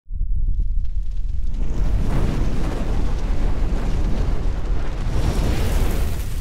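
Flames roar and whoosh in a deep rumble.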